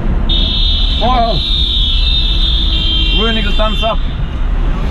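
A man shouts out loudly close by.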